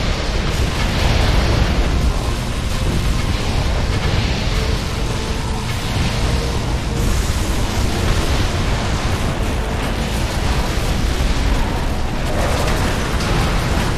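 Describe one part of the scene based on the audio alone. Explosions boom as enemies are destroyed.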